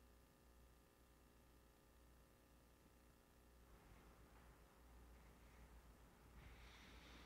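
Footsteps shuffle softly across a hard floor.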